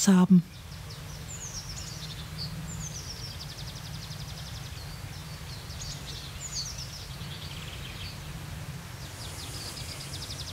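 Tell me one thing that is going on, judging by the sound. Small birds chirp and twitter nearby.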